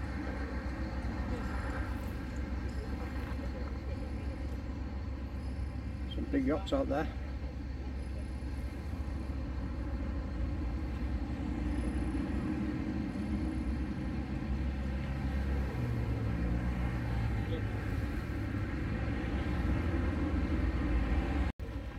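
Wind blows steadily outdoors, buffeting the microphone.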